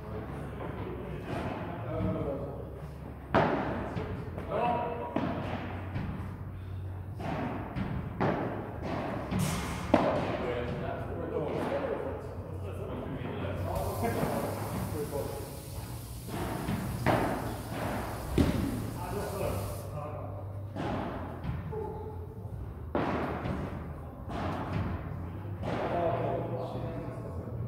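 Paddles strike a ball back and forth in an echoing indoor hall.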